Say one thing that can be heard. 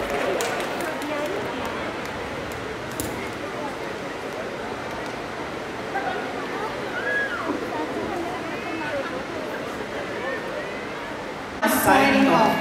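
An audience murmurs and chatters in a large hall.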